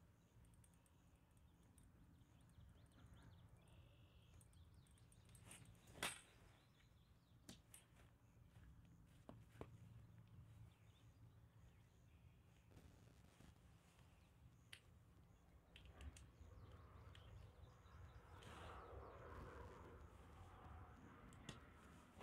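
Tent fabric rustles and flaps.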